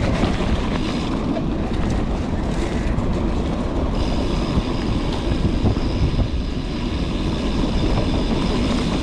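Wind buffets loudly past the rider.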